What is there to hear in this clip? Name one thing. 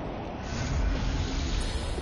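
Flames whoosh and crackle.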